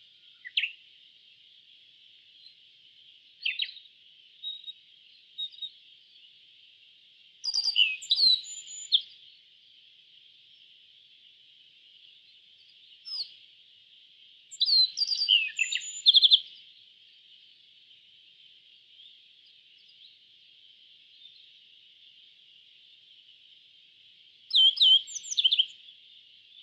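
A small bird sings short bursts of bright chirps and trills close by.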